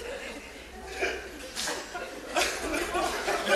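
Shoes tap on a wooden floor.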